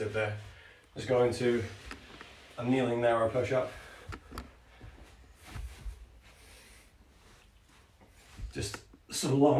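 Hands pat softly on a carpeted floor.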